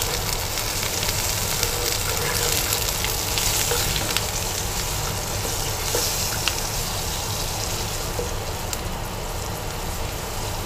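A wooden spoon scrapes and taps against a pan.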